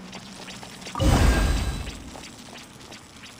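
An electric blast crackles and booms.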